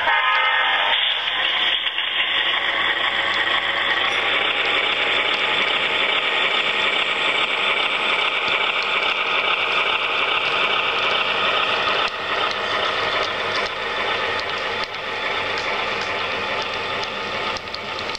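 Small wheels click rhythmically over rail joints.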